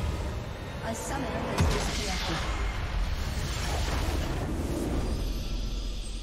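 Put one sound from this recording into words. A loud game explosion booms and rumbles.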